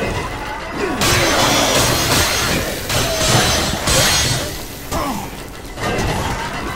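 Heavy blows thud and squelch in quick succession.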